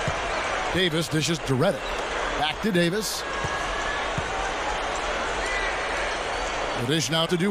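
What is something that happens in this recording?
A large crowd murmurs and cheers steadily in a big echoing arena.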